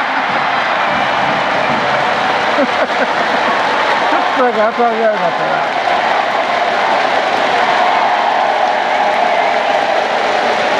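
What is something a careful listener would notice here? A stadium crowd cheers and claps steadily in a large open space.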